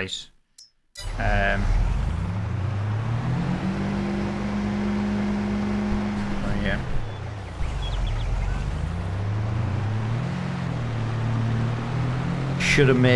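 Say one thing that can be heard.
A car engine hums steadily, rising and falling in pitch as the car drives.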